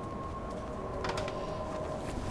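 Wooden wardrobe doors swing open.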